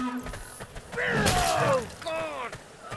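A weapon swings through the air with a whoosh.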